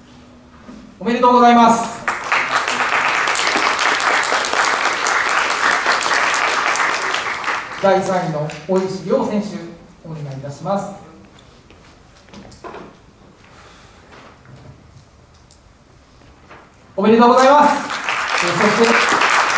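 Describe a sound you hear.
A man announces through a loudspeaker in a large hall.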